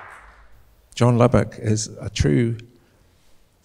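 An elderly man speaks into a microphone, heard through loudspeakers in a large hall.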